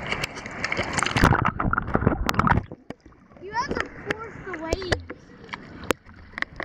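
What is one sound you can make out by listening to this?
Shallow water splashes and sloshes close by.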